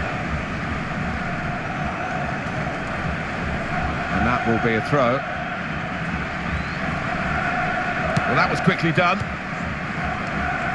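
A large crowd murmurs and chants steadily in a stadium.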